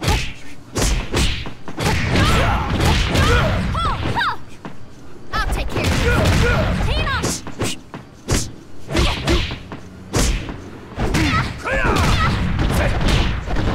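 Heavy punches and kicks land with sharp thuds in quick bursts.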